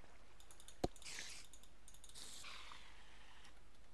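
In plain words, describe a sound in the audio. A spider hisses and attacks.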